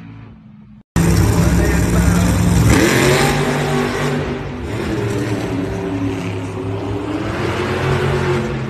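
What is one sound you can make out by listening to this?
A monster truck engine roars loudly, revving up and down.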